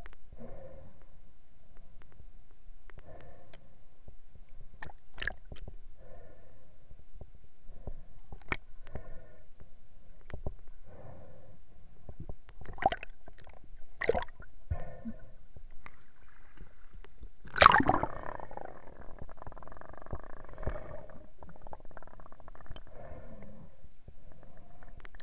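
Water gurgles and knocks, muffled as if heard underwater.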